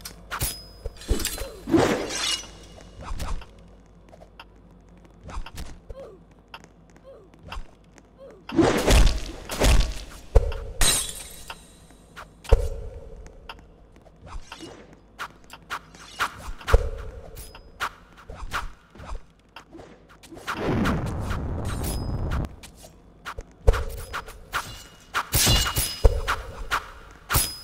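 Swords strike and clang in sharp bursts.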